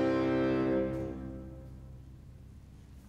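A string and keyboard ensemble ends a piece on a long held chord that rings out in a large hall.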